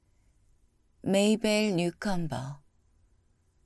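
A woman reads out calmly and gently close to a microphone.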